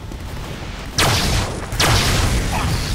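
A heavy gun fires in a rapid, loud burst.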